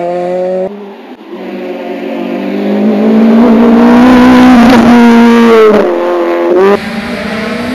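A rally car engine roars loudly as the car speeds past close by.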